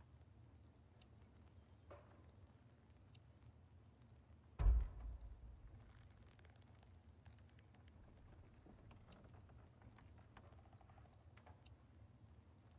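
Soft menu ticks sound as a selection moves from item to item.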